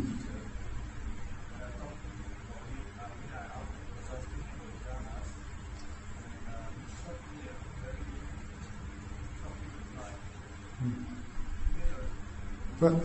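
A middle-aged man talks calmly and warmly, heard through a microphone.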